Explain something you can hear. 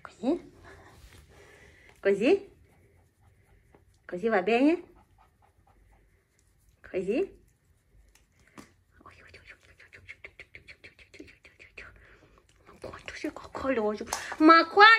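A puppy yips and whines in short bursts.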